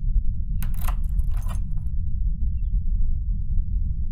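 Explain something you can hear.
Buttons click on an electronic safe keypad.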